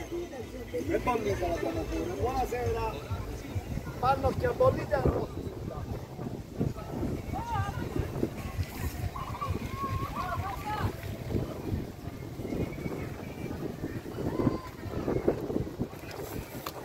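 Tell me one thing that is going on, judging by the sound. People chatter and call out nearby outdoors.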